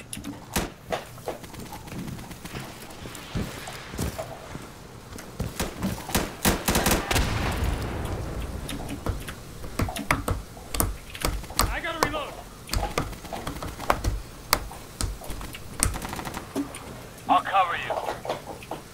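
A rifle fires sharp shots in quick bursts.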